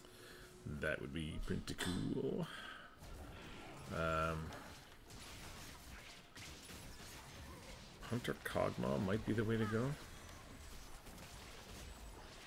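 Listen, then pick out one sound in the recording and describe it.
Fighting sound effects from a video game clash and crackle.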